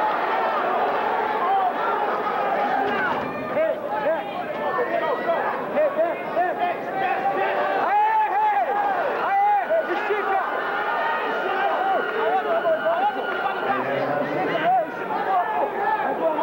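A crowd of men shouts and cheers loudly in a large echoing hall.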